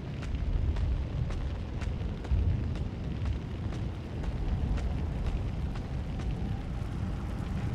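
Boots step steadily over rubble-strewn ground.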